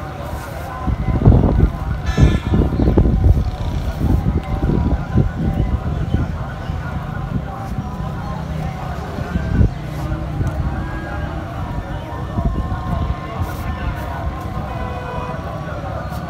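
A cloth flag flaps and rustles in the wind.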